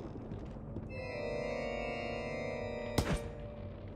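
An organ plays a sustained chord.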